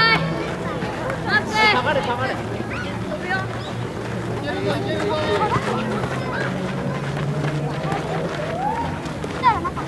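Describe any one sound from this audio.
Children shout and call out to each other across an open field.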